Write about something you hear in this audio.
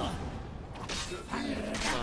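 Swords clash and ring.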